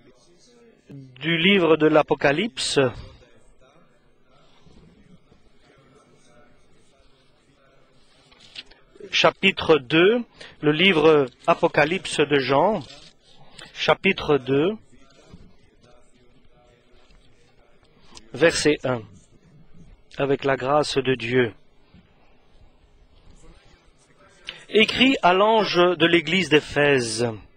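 A middle-aged man speaks steadily into a microphone, with pauses.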